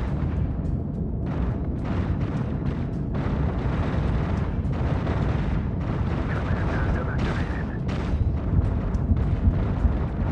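A deep spaceship engine rumbles steadily.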